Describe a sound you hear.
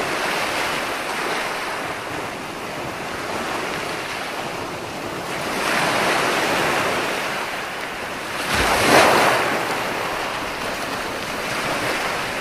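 Ocean waves break and wash up onto a beach in a steady rolling rush, swelling and fading.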